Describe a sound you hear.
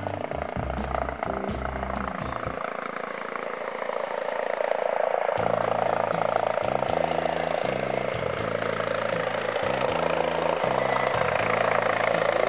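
A helicopter hovers overhead with a steady whirring roar of its rotor and engine.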